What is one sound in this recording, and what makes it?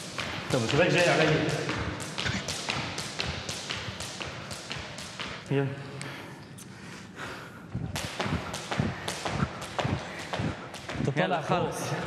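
A jump rope slaps the floor in a quick, steady rhythm.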